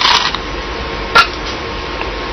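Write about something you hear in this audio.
A stone clicks down onto a board.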